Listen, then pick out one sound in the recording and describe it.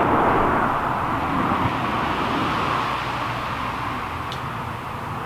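Wind rustles the leaves of large trees, slowly easing off.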